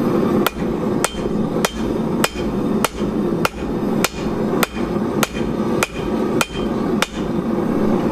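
A hammer strikes hot metal on an anvil in a steady, ringing rhythm.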